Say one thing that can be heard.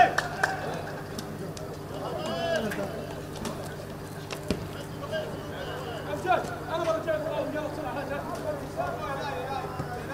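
Men shout and call out across an open outdoor pitch.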